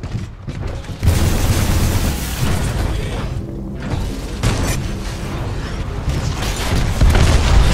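A loud energy beam roars steadily.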